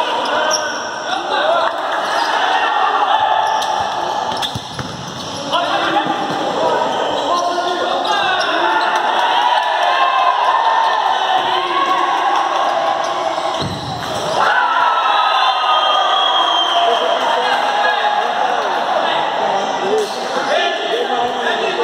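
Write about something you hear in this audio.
Young men shout and call out in a large echoing hall.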